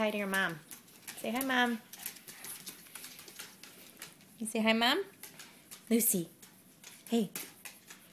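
A small dog whines and yelps close by in short bursts.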